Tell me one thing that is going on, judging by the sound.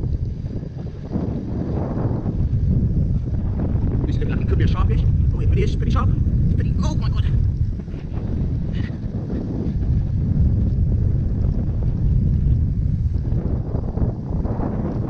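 Wind rumbles loudly across the microphone outdoors.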